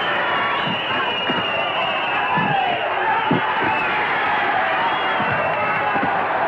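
Bodies thud against the ring.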